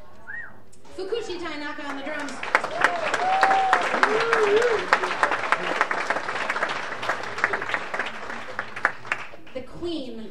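An audience applauds and cheers.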